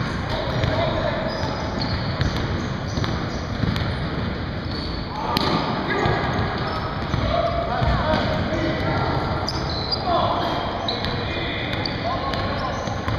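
Men shout to each other across a large echoing gym.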